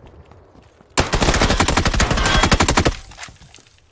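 A gun fires a fast burst of shots.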